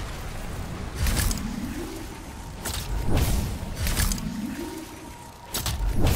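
A game character's armoured suit whooshes and thrusts as it dashes along.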